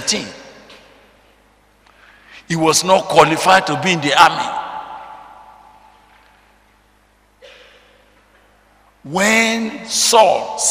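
A middle-aged man preaches loudly and with animation through a microphone in a reverberant hall.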